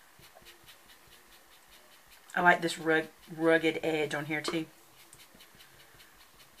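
A sponge dabs softly and repeatedly on paper.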